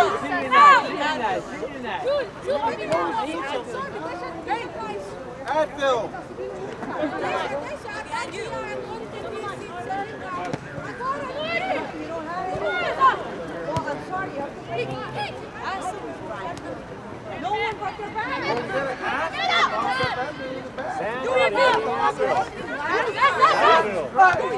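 Young women shout and call to each other outdoors.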